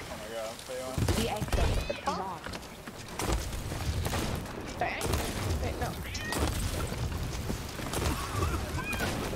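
Explosions boom on a ship's wooden deck.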